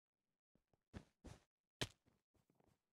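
Short sharp hits land in a fight.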